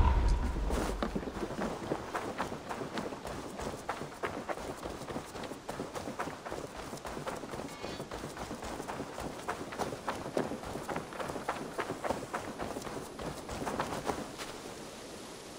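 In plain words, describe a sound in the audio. Quick footsteps thud along a dirt path.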